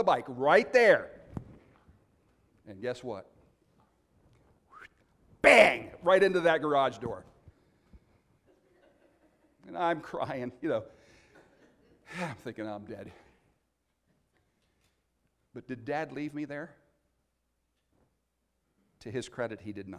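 A middle-aged man speaks with animation into a microphone, in bursts with pauses, in an echoing room.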